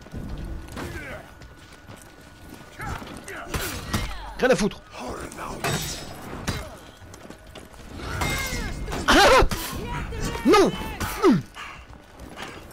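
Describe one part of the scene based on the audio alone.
Metal blades clash and ring in a fight.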